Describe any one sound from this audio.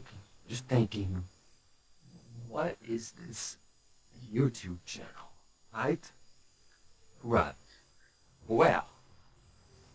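A man speaks in short, halting bursts close to the microphone.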